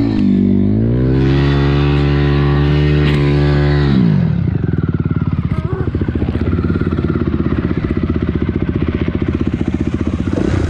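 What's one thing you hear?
A dirt bike engine idles with a steady hum.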